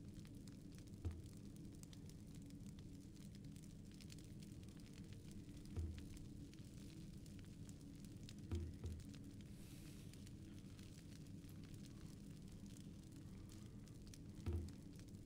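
Soft low menu thuds sound now and then as a selection moves between options.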